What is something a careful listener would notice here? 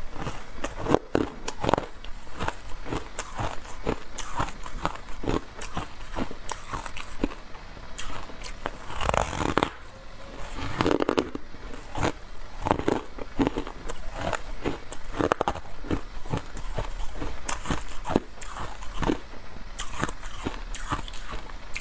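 A young woman chews food close to a microphone, with soft wet smacking sounds.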